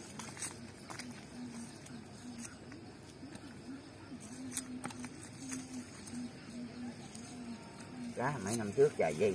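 A fishing net rustles and small fish tap against gravel as hands pull them free.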